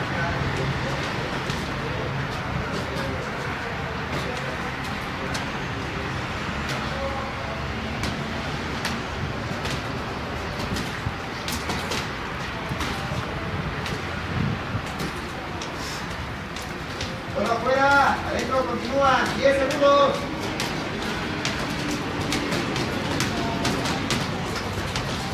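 Boxing gloves thud against a head guard and gloves in quick punches.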